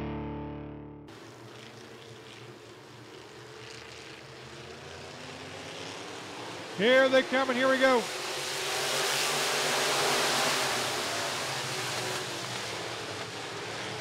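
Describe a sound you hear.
Race car engines roar around a dirt track.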